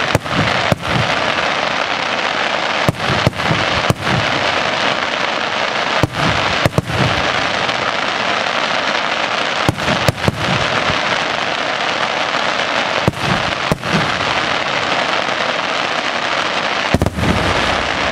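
Fireworks burst with loud, booming bangs.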